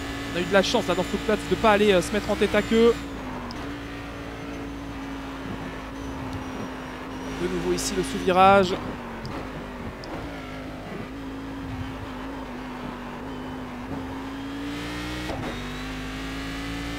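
A race car engine drones steadily, dipping briefly at each gear change.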